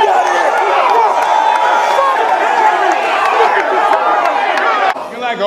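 A crowd cheers and shouts noisily.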